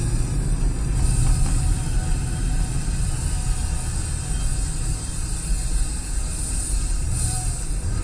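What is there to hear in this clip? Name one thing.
A car engine rumbles steadily from inside the cabin while driving.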